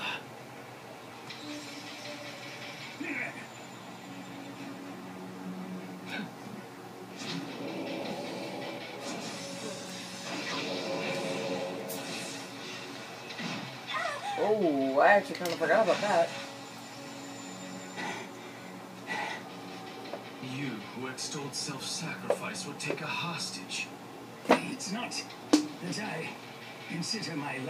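A television plays music and sound effects.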